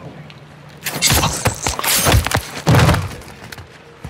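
Heavy blows thud in a short scuffle.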